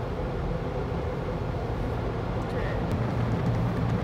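Big rotating brushes scrub and thump against a car's body.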